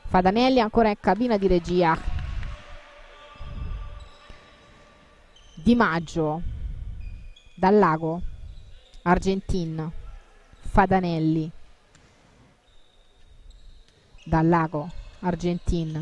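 A ball thuds sharply as players kick and pass it.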